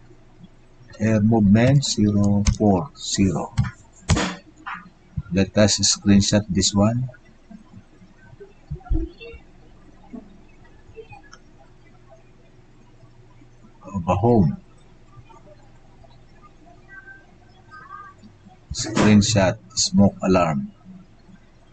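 A man speaks calmly into a webcam microphone, in short bursts with pauses.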